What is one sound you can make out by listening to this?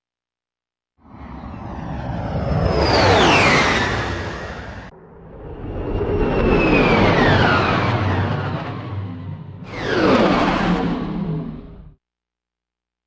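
A spaceship whooshes past with falling swooping sounds.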